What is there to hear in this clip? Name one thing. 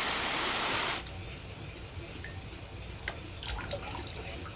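Water trickles into a bowl.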